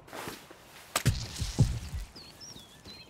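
A tool strikes wood with heavy thuds.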